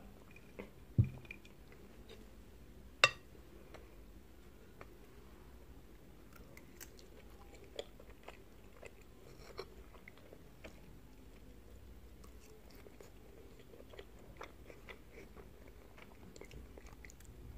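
A fork clinks and scrapes against a glass dish.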